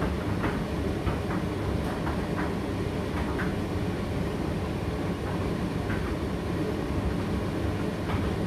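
A condenser tumble dryer runs with a low, steady rumble.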